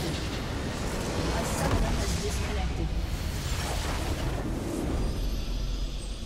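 A huge structure explodes with a loud booming blast.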